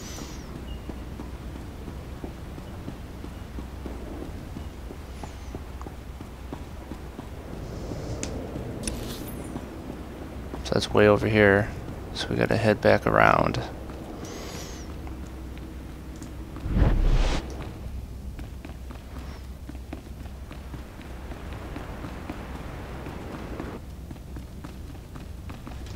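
Footsteps tap along a hard floor.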